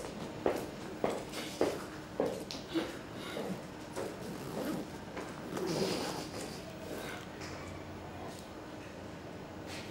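A woman sobs softly nearby.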